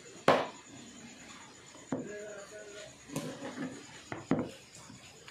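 A knife chops on a wooden cutting board with sharp knocks.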